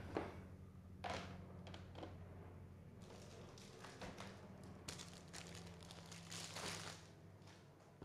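A hard plastic case taps and rustles in hands nearby.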